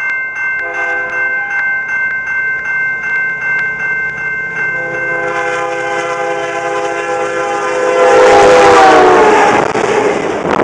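A train horn blares loudly as it approaches, then drops in pitch as it passes.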